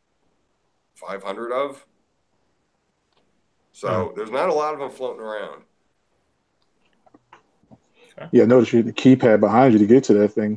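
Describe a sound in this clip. A middle-aged man speaks calmly over an online call, in short bursts with pauses.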